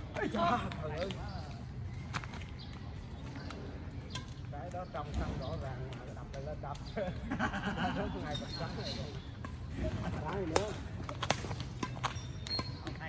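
Badminton rackets hit a shuttlecock with sharp pops.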